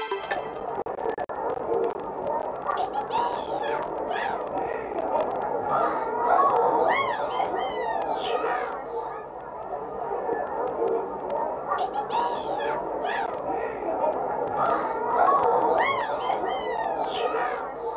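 Upbeat electronic game music plays with chiming melody notes.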